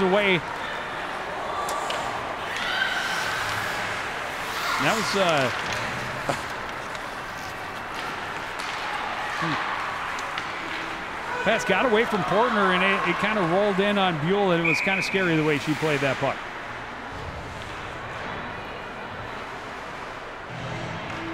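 A crowd murmurs in an echoing arena.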